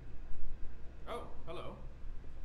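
An elderly man says a short greeting, close by.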